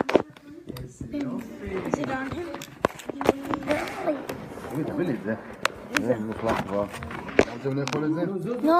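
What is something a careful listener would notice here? A young boy talks excitedly, close to a phone microphone.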